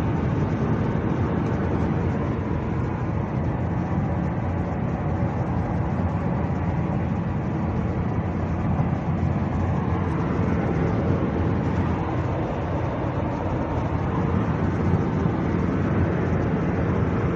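Wind rushes loudly past an open car window.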